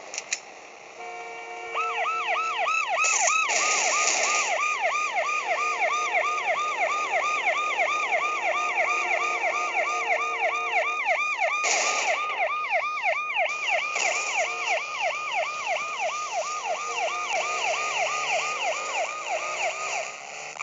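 A police siren wails in fast, repeating sweeps.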